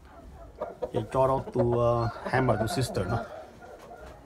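Chickens cluck loudly close by.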